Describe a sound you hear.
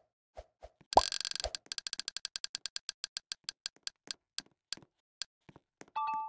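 A game's selection wheel ticks rapidly, slowing as it settles.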